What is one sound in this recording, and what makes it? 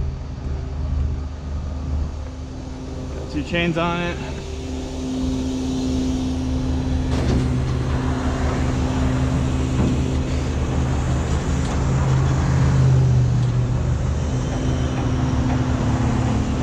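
A truck engine drones steadily while driving.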